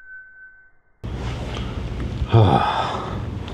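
A hand scrapes a small metal object up off concrete.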